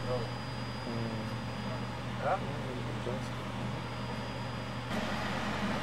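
Footsteps climb metal stairs.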